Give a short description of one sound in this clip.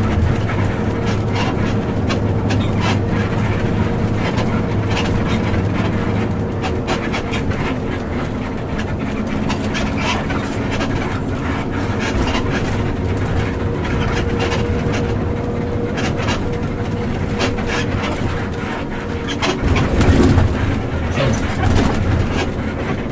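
Small items hanging in a bus cab rattle and clink.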